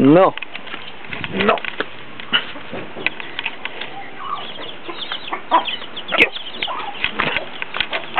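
Chickens cluck and crow nearby.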